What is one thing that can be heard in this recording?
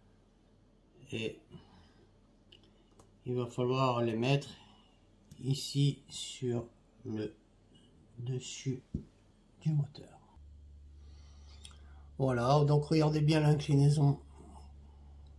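A man talks calmly close by, in short phrases with pauses.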